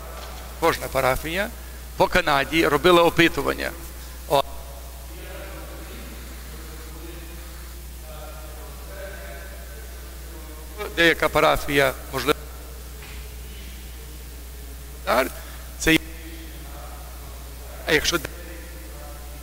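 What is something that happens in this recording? A man chants loudly in bursts through a microphone in a large echoing hall.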